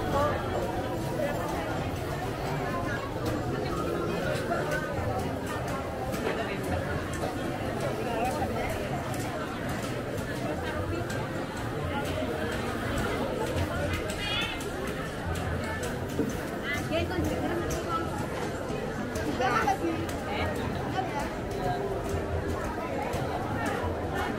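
A crowd of women and men chatter nearby, outdoors.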